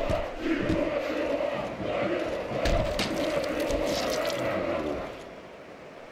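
Boxing gloves land punches with sharp thuds.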